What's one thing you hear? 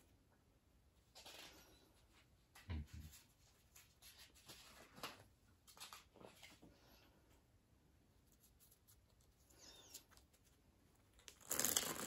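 Playing cards shuffle and tap softly against each other.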